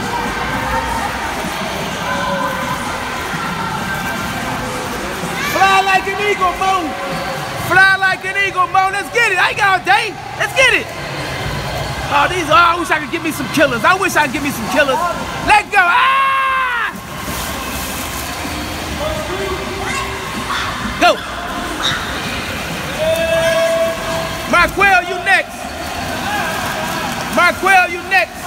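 Water splashes steadily as a swimmer kicks and strokes.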